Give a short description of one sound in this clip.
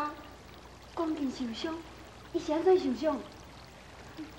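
A young woman speaks with concern, close by.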